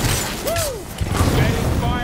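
An energy blast explodes with a crackle.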